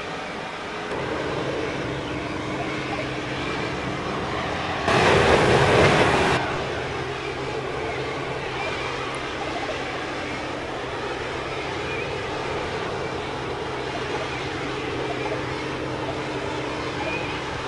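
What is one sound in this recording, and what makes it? A propeller engine hums steadily.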